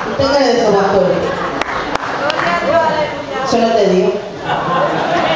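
A woman sings with feeling into a microphone, heard through loudspeakers in an echoing room.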